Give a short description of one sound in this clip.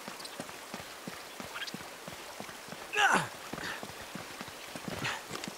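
Footsteps tread steadily on rock and earth.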